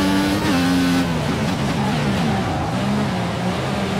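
A racing car engine winds down as the car brakes.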